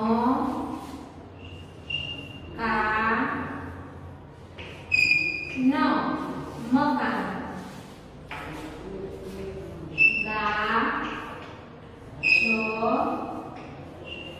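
A young woman speaks clearly and calmly, like a teacher explaining.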